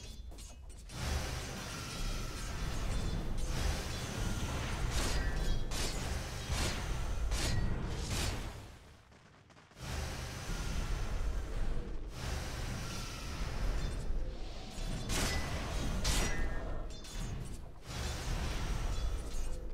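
Magic spells burst and crackle in a fantasy battle.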